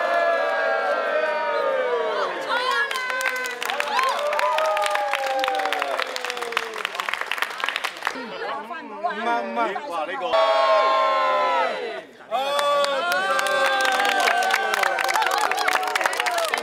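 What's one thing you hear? A crowd of men and women cheers and shouts loudly.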